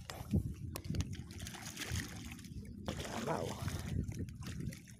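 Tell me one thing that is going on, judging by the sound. A fish thrashes and splashes at the water's surface.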